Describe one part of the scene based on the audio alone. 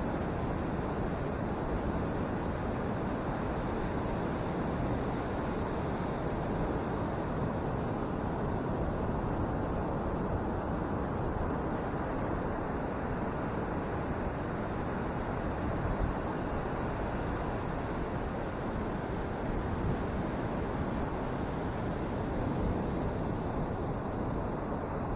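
Wind rushes loudly across the open beach.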